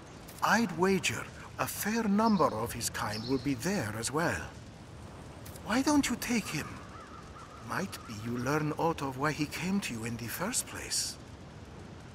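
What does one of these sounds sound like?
An elderly man speaks calmly in a deep voice.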